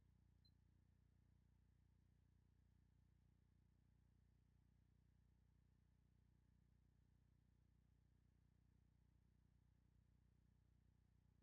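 A small spinner whirs softly as it spins.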